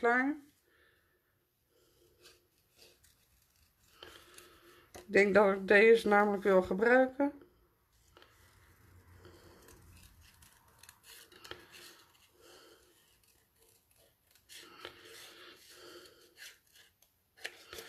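Scissors snip through thin card.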